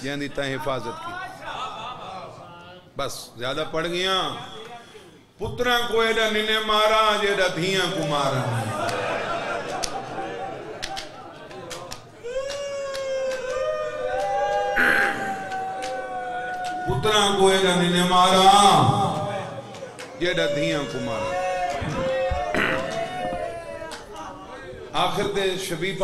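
A man speaks passionately into a microphone, his voice loud and amplified, sometimes rising into a sung chant.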